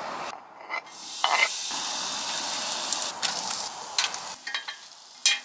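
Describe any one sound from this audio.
Food sizzles in a hot cast-iron pan.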